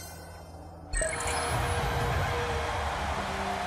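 A bright whooshing reward chime swells and rings on.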